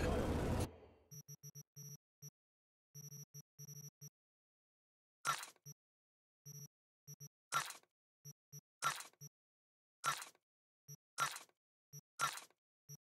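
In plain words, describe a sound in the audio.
Short soft electronic clicks sound again and again.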